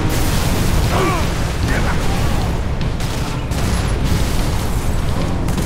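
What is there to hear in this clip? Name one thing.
A heavy engine rumbles low and steady.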